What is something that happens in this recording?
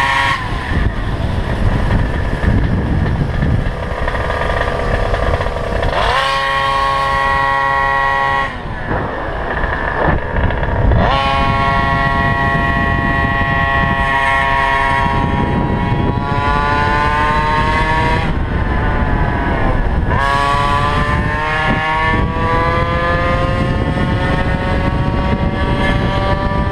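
Wind rushes past loudly while riding outdoors.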